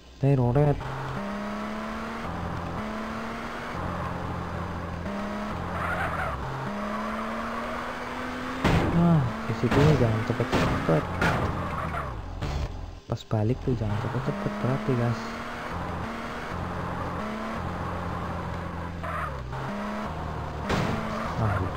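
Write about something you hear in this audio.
A car engine revs and drones, shifting up and down in pitch.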